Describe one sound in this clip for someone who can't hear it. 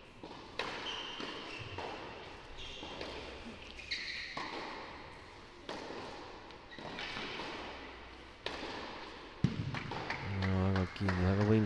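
A tennis ball is struck back and forth with rackets.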